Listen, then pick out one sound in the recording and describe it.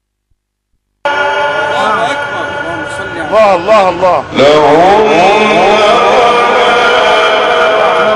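A man chants melodically into a microphone, heard through loudspeakers.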